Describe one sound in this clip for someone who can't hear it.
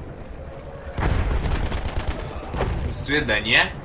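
A machine gun fires a burst of shots.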